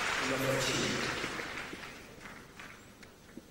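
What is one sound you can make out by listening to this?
A crowd applauds in a large hall and the applause fades.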